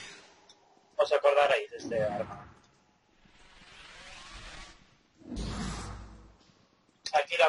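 A heavy hammer swishes through the air.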